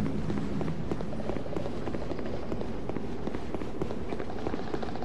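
Armoured footsteps run on stone steps.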